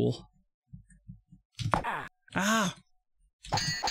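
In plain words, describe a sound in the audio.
Swords clash in a video game.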